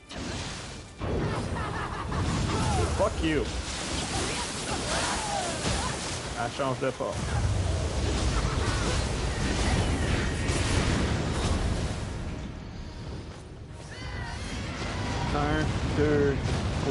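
Heavy magical blasts rumble and boom.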